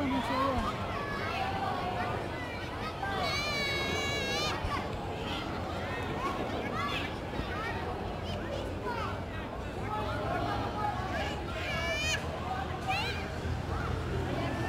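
Young children shout and cheer excitedly across an open outdoor field.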